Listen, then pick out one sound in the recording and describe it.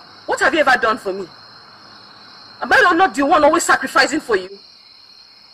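A woman shouts angrily close by.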